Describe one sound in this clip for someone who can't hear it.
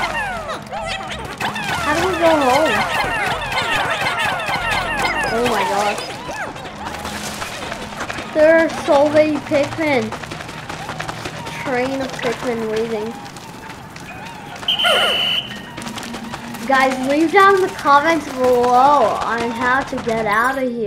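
Small game creatures chirp and squeak in high, bouncy voices.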